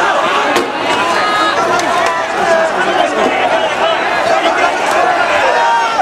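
A man shouts angrily at close range.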